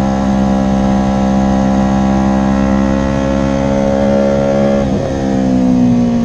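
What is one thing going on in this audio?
A motorcycle engine roars steadily at high revs.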